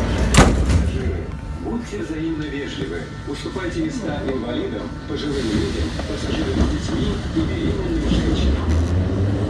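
A young man talks nearby in an echoing hall.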